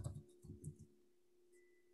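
A voice speaks briefly over an online call.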